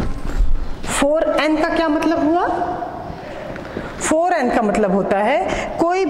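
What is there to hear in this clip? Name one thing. A woman speaks clearly and calmly, close by.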